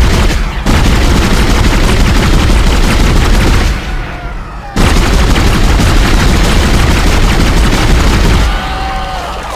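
A weapon fires rapid bursts of shots.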